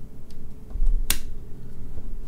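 A metal blade snaps open with a sharp click.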